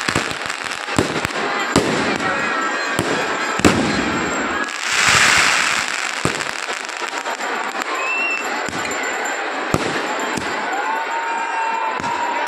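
Fireworks bang and crackle loudly outdoors.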